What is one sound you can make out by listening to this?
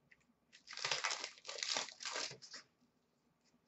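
Trading cards rustle and flick as they are handled.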